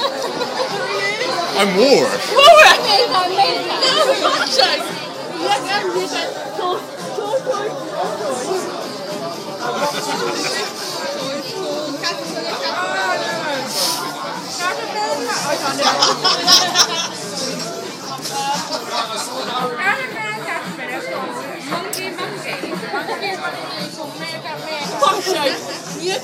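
Women laugh loudly nearby.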